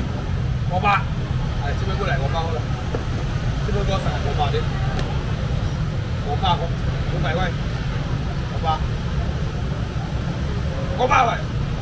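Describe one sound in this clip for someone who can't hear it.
Adults talk nearby amid a crowd's hubbub.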